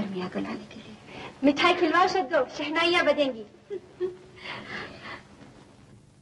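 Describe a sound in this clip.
Young women laugh and talk playfully close by.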